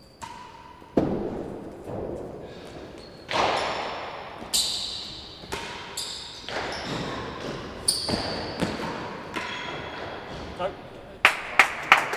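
Rackets strike a ball with a sharp crack.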